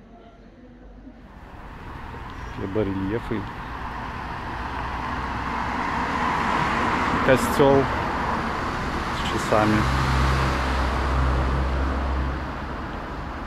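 A car drives past on a nearby street, swelling and then fading.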